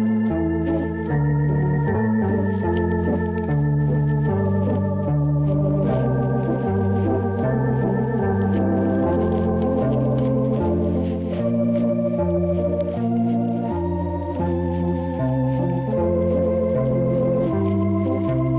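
An electronic organ plays chords over a steady, repeating bass rhythm.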